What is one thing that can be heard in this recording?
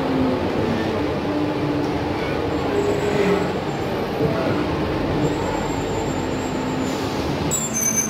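A bus engine hums and rattles from inside while riding.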